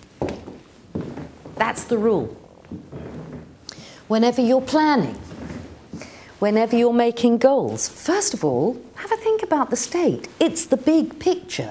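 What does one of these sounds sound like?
A middle-aged woman speaks with animation, heard through a microphone.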